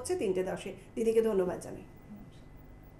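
A second woman speaks warmly into a microphone.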